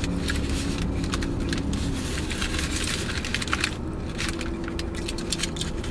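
Foil crinkles close by.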